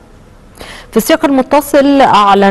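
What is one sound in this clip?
A woman speaks calmly and clearly into a microphone, reading out.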